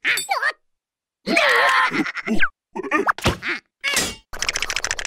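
Small cartoon creatures babble and squeal in high-pitched, squeaky voices.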